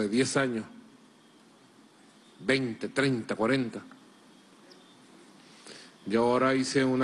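A middle-aged man speaks calmly and deliberately into a close microphone, with pauses.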